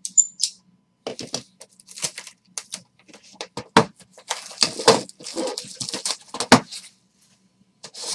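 Cardboard boxes knock and scrape.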